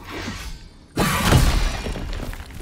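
Wooden crates smash apart with a loud crack.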